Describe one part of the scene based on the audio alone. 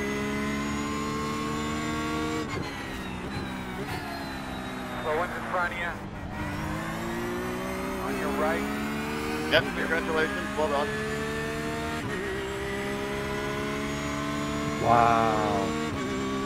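A racing car engine roars steadily, rising in pitch as it speeds up and dropping as it shifts gears.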